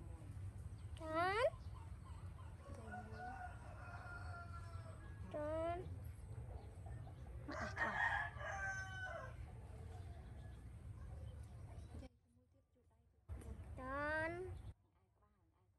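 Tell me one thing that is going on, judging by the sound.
A baby monkey squeaks shrilly in short rising cries.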